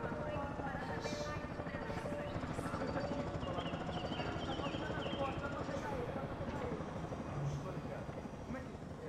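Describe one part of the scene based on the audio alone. A woman speaks quietly and urgently.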